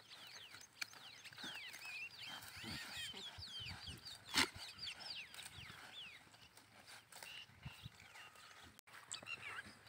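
A goat tugs and chews at rustling leafy branches.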